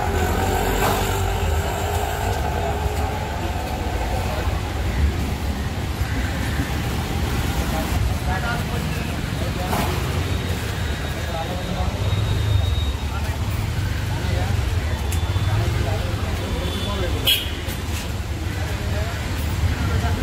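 Street traffic rumbles outdoors nearby.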